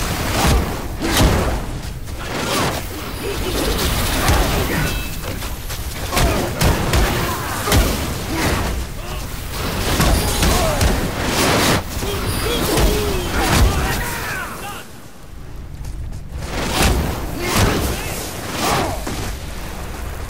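Heavy weapon blows thud and clang.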